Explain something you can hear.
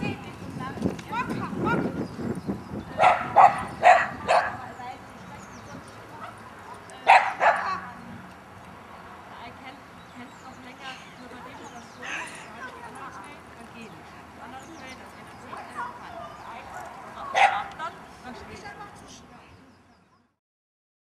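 A woman calls out short commands outdoors.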